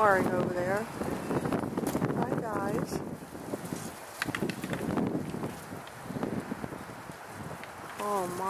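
Elk let out high, squealing calls that glide up and down.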